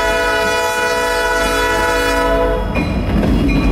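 A diesel locomotive's horn blares loudly, then cuts off.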